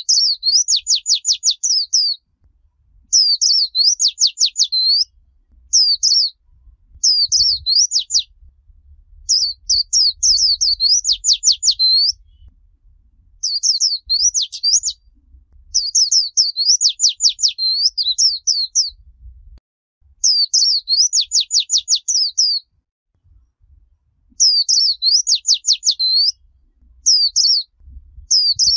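A small bird sings loud, high, rapid trilling phrases again and again, close by.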